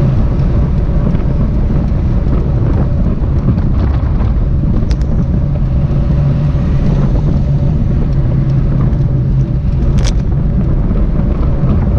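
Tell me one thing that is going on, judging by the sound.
Bicycle tyres hum on the road.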